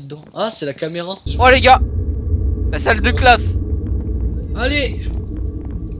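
A young man speaks with animation through a headset microphone.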